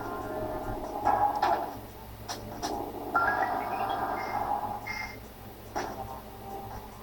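Electronic game sound effects blip and burst.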